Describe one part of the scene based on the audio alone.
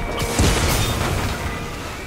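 An explosion booms with debris crashing.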